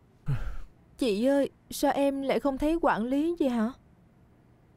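A young woman speaks earnestly nearby.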